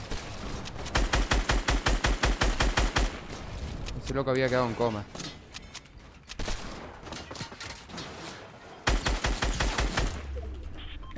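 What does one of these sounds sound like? Rapid automatic gunfire rattles in a video game.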